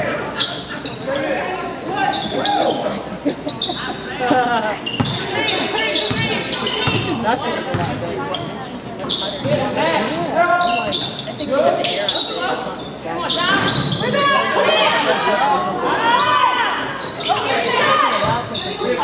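Spectators and players call out and chatter nearby.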